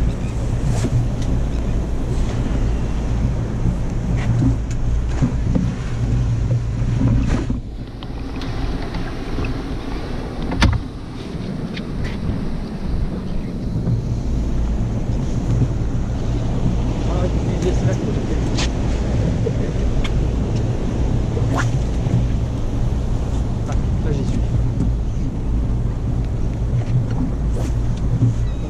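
Choppy sea water slaps against an inflatable boat's side.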